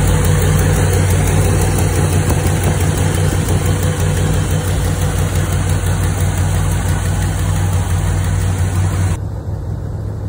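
A car engine idles close by with a steady low rumble.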